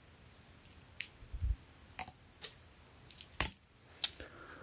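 A tape measure taps and clicks lightly.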